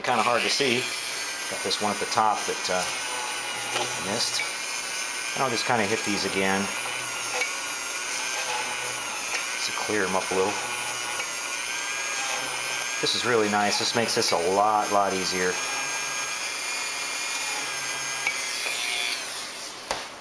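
A small rotary tool whines steadily at high speed as it grinds plastic.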